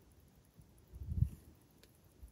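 A watch is set down on a surface with a soft thump.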